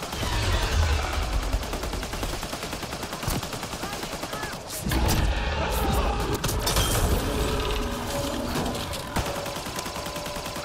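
A crackling energy blast charges and fires.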